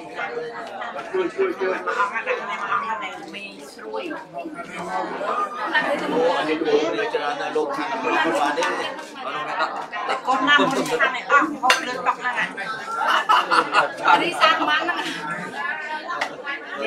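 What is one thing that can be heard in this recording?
Dishes and spoons clink as food is served.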